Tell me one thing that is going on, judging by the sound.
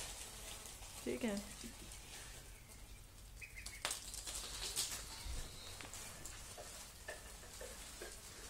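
Ducklings peep softly.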